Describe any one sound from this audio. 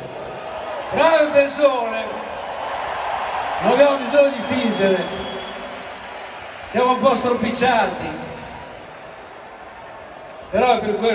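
A man sings through loud speakers in a huge open-air arena.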